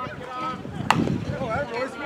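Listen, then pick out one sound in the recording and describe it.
A bat hits a baseball with a sharp crack.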